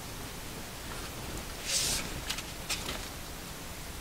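A plastic-coated board creaks and crackles softly as it is tilted and lifted.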